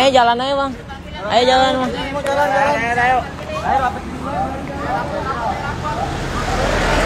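A young man shouts loudly nearby.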